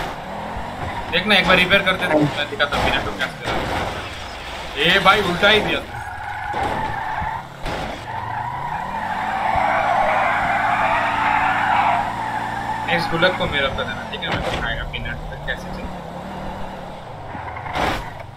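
A car engine revs and roars.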